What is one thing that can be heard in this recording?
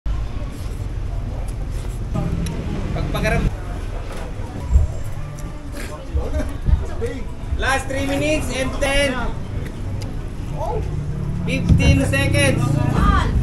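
A man chews and slurps food noisily.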